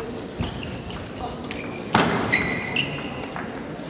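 A ping-pong ball clicks sharply off paddles and a table.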